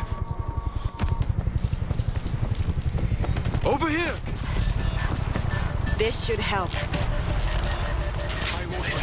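Rapid gunfire rattles close by, with many quick shots.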